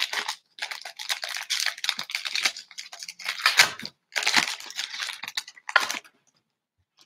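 Foil wrappers crinkle and rustle as they are torn open.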